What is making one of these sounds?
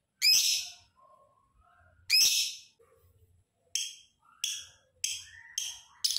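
A small parrot lets out loud, shrill chirps again and again.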